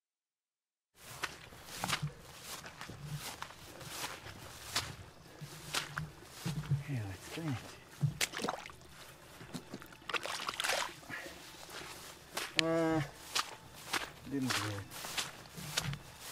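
Footsteps swish through tall wet grass.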